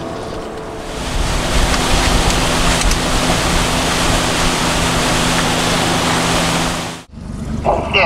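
Water rushes and splashes against a boat's hull.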